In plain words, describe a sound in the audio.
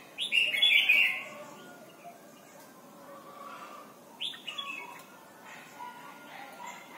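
A caged bird sings loud, bright warbling bursts close by.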